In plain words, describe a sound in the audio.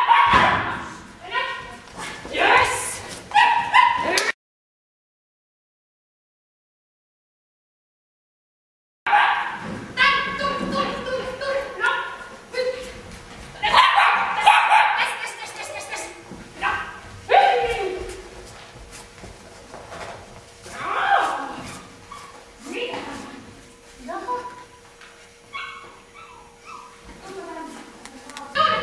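A woman calls out to a dog with animation in a large echoing hall.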